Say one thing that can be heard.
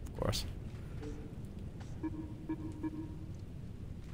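A game menu chimes softly as it opens.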